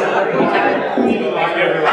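An elderly woman laughs.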